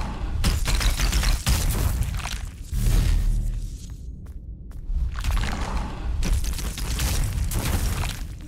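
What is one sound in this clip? Sword slashes and magic blasts crackle and boom.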